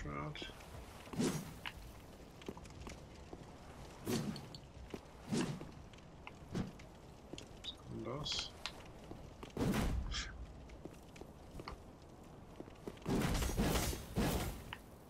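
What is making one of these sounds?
Sword swings and heavy thuds sound in bursts.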